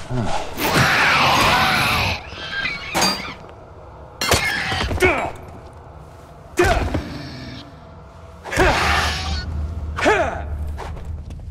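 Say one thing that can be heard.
A creature shrieks and screeches.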